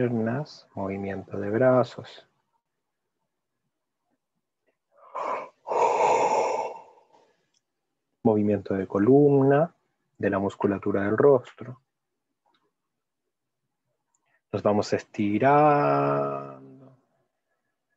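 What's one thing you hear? A man speaks calmly and slowly through an online call, with long pauses.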